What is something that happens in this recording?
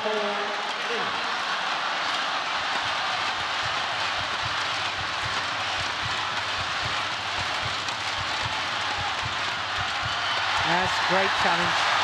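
A crowd claps along in a steady rhythm.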